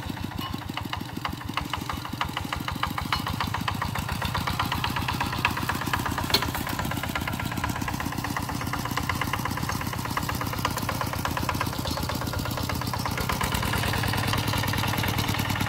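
A small diesel engine chugs steadily and loudly close by.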